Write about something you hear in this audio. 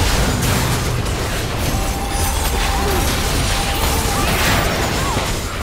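Game characters' attacks hit with sharp impacts.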